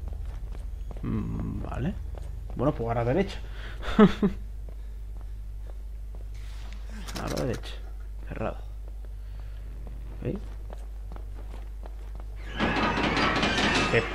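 A young man speaks in short, lively bursts close to a microphone.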